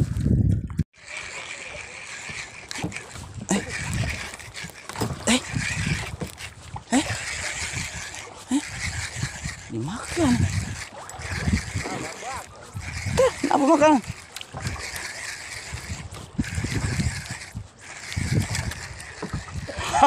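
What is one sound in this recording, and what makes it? A fishing reel whirs in bursts as line is wound in.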